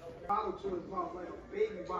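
Film dialogue plays quietly from a television.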